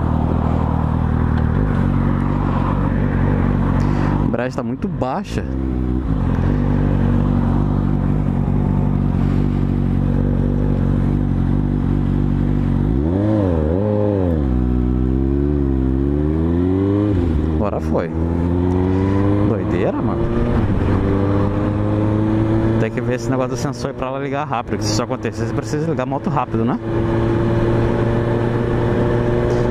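A motorcycle engine hums and revs up and down as the bike rides.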